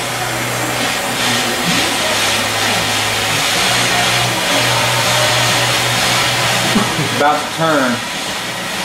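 A gas torch flame hisses steadily against metal.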